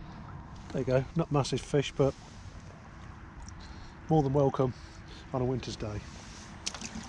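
An older man talks calmly close to the microphone.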